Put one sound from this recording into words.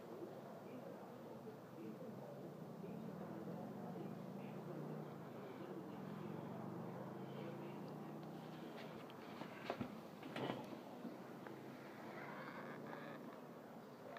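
A hand rubs and strokes a cat's fur close by.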